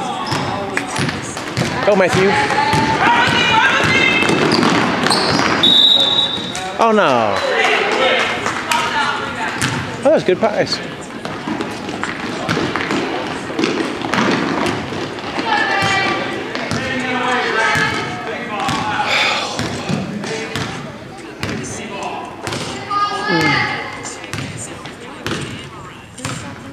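Sneakers squeak on a wooden gym floor.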